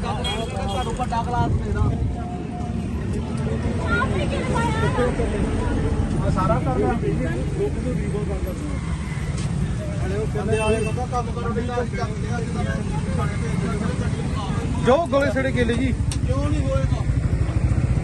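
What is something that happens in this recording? Several men talk nearby, outdoors.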